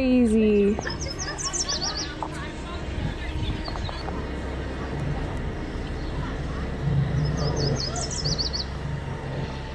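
Crickets chirp close by.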